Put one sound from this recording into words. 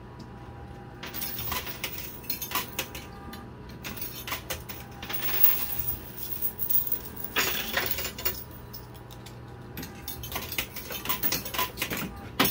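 Coins clink and clatter as they drop and slide in a coin pusher machine.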